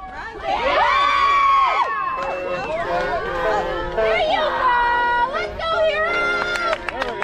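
Children shout and cheer loudly outdoors.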